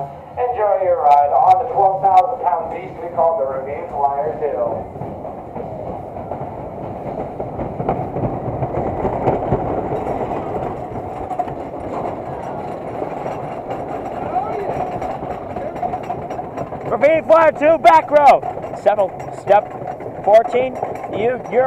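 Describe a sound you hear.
A roller coaster car rattles and rumbles along a wooden track.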